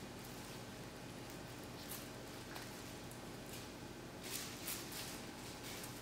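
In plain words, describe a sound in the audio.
Liquid pours in a thin stream and splashes into a jug.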